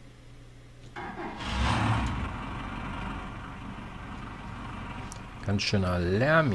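A large machine starts up with a low rumble.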